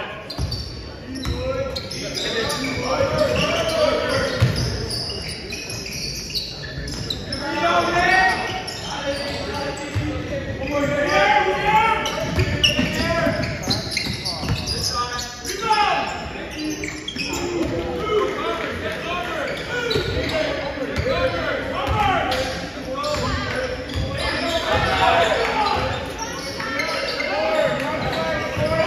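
Young players and spectators shout and call out in a large echoing gym.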